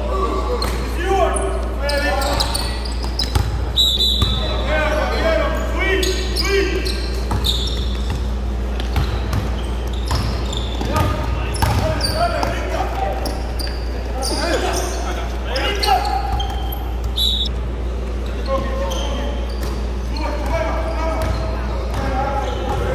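Young men shout to each other across an echoing gym.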